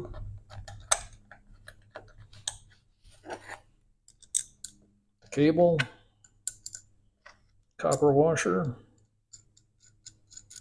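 Small metal parts click and tap together in someone's fingers.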